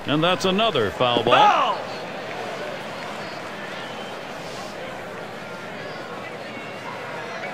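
A large crowd murmurs steadily in a stadium.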